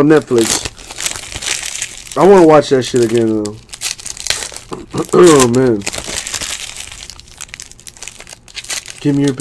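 A foil wrapper crinkles as it is torn open by hand.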